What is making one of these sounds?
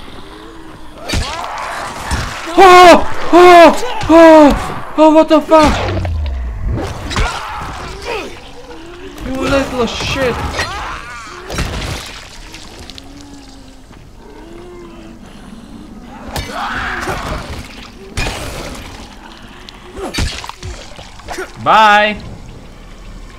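A young man talks and shouts with animation into a close microphone.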